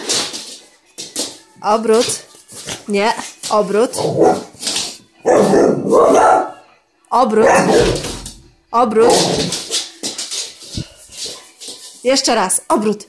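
A dog's claws click and scrabble on a hard floor.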